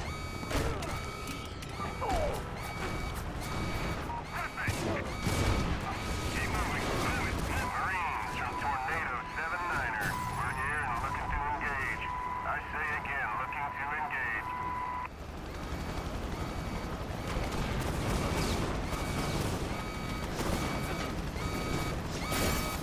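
Heavy blows and crashes thump repeatedly.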